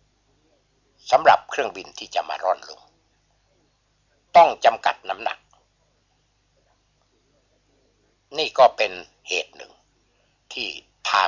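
A man speaks calmly in short phrases with pauses.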